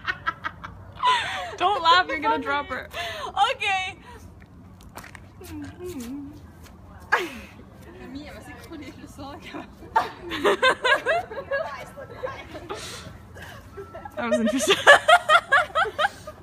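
Young women laugh and shriek loudly nearby.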